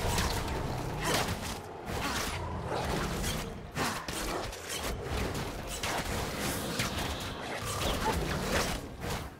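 Fantasy spell effects whoosh, crackle and blast in quick succession.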